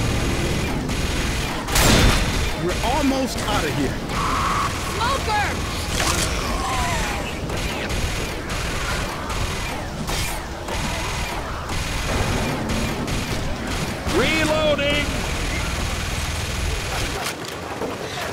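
Gunshots fire in rapid bursts close by.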